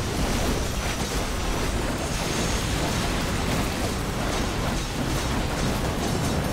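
Game battle effects whoosh, clash and burst in a rapid, dense jumble.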